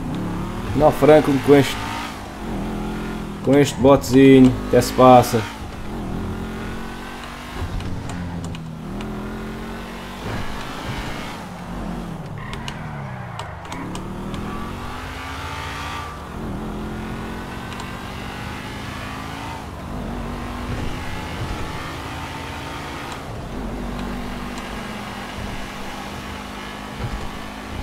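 A car engine roars, its pitch rising and falling as it speeds along.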